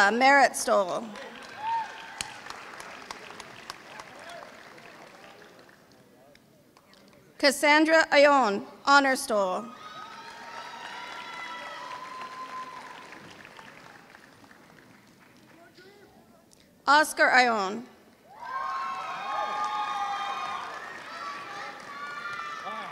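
A crowd claps and cheers in a large echoing hall.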